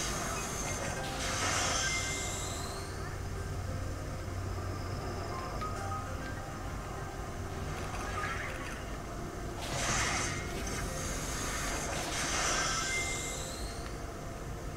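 Rushing whooshes sweep past as a game character dashes at speed.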